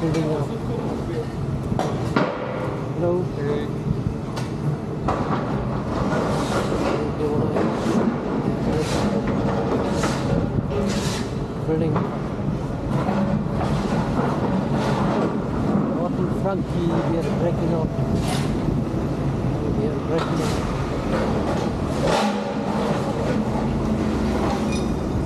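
Rubble crashes and clatters as a building is torn down.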